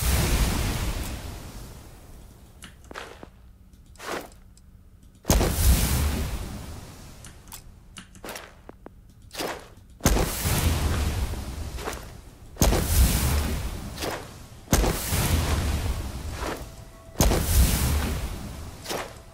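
Electronic menu sounds whoosh and swell several times, each fading out slowly.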